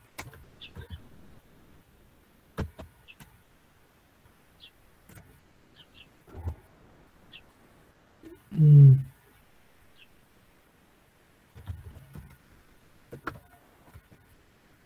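Keys click on a keyboard now and then.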